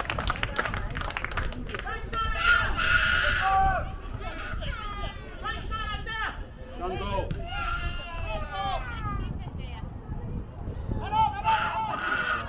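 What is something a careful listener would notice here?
A man shouts instructions from close by.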